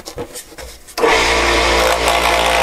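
A scroll saw motor starts and runs with a steady buzzing hum.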